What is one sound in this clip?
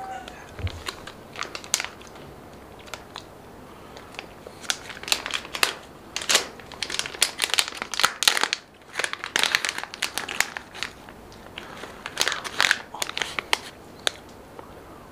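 A plastic snack bag crinkles and rustles.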